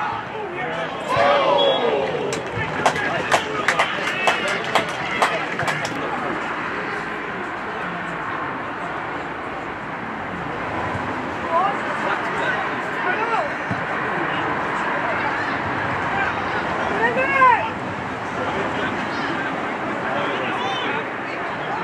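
Footballers shout to each other across the pitch.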